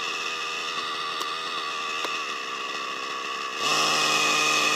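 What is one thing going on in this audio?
A model helicopter's engine whines steadily at idle, then revs up sharply.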